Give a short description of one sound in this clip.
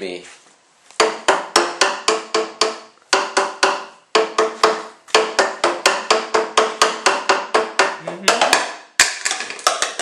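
Paddles slap the open ends of tuned pipes, playing a quick run of hollow, pitched notes.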